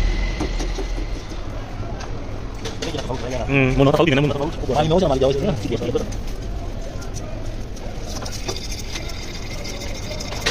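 Metal tools scrape and clink against an engine block.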